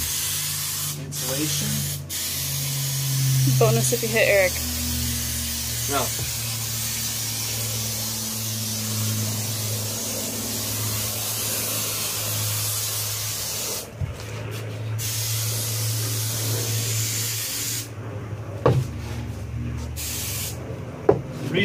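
Aerosol spray hisses in short bursts.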